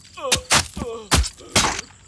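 A man groans and cries out in pain.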